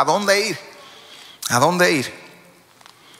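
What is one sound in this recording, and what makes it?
A man speaks slowly and with feeling into a microphone, in a large echoing hall.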